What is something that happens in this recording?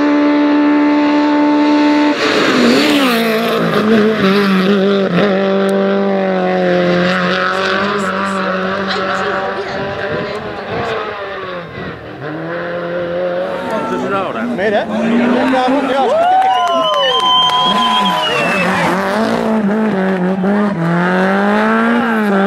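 A rally car engine revs hard through the gears.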